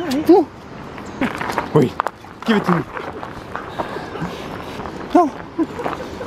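A dog's paws scuff on gravel.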